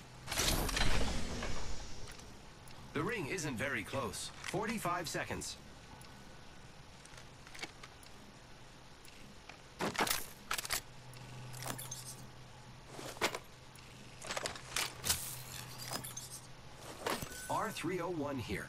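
Game weapons click and clatter as they are picked up and swapped.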